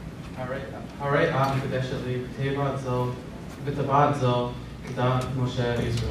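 A man speaks calmly into a microphone nearby.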